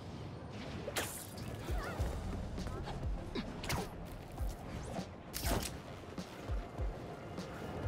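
Web lines shoot out with sharp, snapping bursts.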